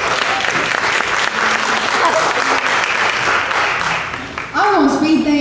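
An audience applauds and cheers loudly.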